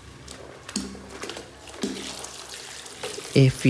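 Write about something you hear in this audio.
Water trickles and splashes into a bucket of soapy water.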